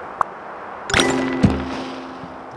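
Confetti bursts with a popping sound.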